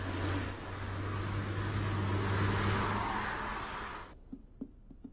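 A car engine hums as a car drives along a road.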